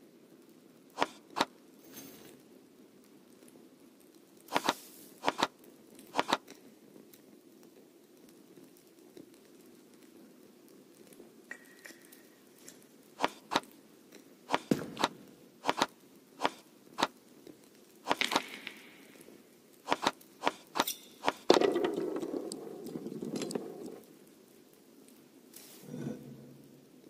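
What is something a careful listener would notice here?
Sliding puzzle tiles click sharply into place, again and again.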